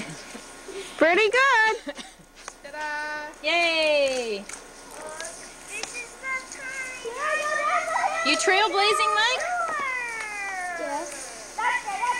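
A young child calls out in a high voice.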